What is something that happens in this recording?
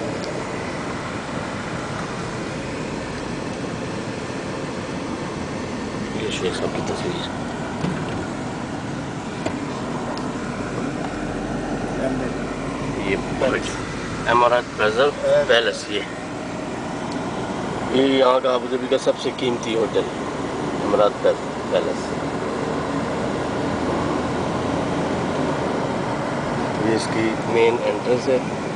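A car engine hums steadily with road noise while driving.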